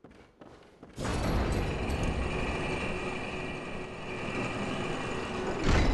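A heavy lift rumbles steadily as it moves.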